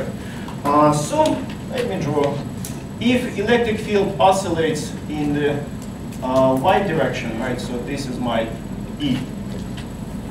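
A man speaks calmly nearby.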